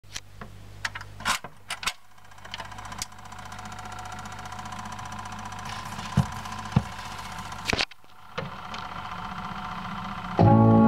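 A record turntable hums steadily as it spins.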